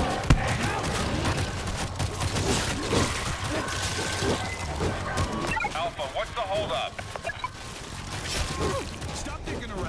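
Heavy blows thud into bodies in quick succession.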